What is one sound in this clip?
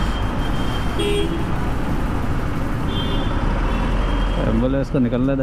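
Vehicle horns beep briefly in traffic.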